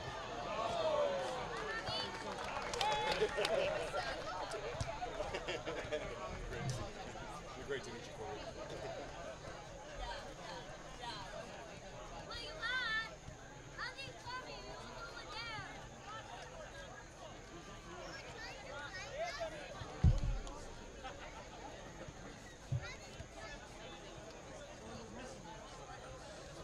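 Players shout to one another across an open field.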